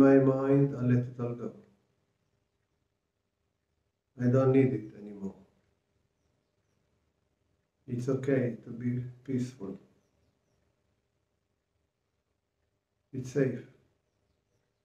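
An older man speaks calmly and slowly, close to the microphone, with long pauses.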